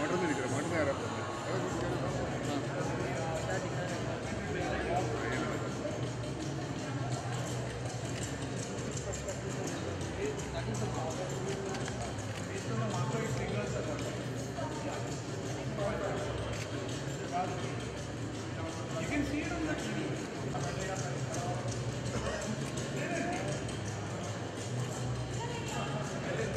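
A crowd of men chatters all around, close by, in a lively echoing hall.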